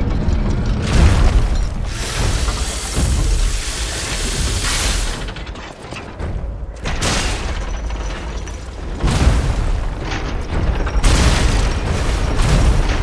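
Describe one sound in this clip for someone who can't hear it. A blade clangs sharply against metal.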